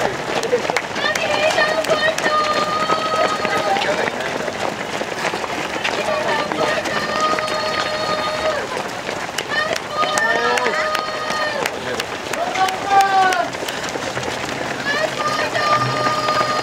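Many runners' footsteps patter on the road.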